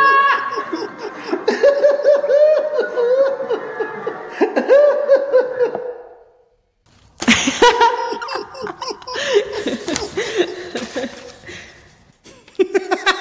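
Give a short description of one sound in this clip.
A woman laughs loudly and heartily, close by.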